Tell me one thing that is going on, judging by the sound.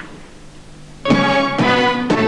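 An orchestra starts playing.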